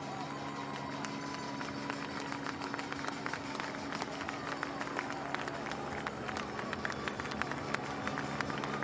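Spectators clap and cheer in the distance.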